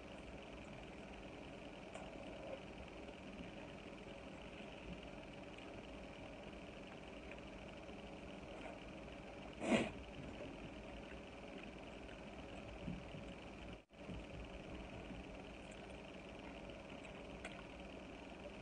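A woman chews food close by.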